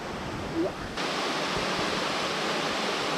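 A small stream of water trickles and splashes.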